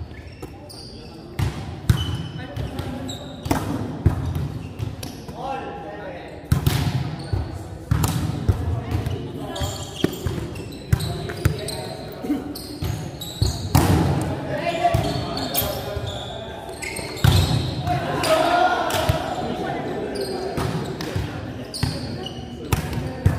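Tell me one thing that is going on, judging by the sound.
A volleyball thumps off hands and the floor, echoing in a large hall.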